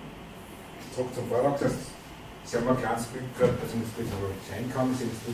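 A man speaks calmly to an audience in a room with some echo.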